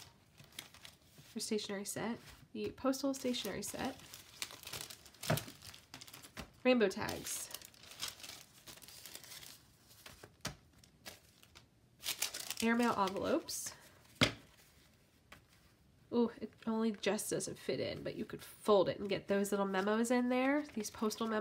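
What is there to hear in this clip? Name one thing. Paper rustles and crinkles as hands shuffle it.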